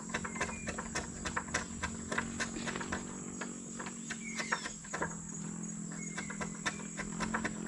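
Wooden poles knock and tap together in quick, uneven strikes.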